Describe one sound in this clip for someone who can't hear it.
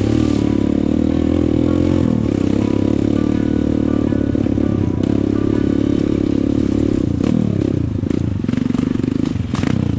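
Motorcycle tyres crunch over a rough dirt track.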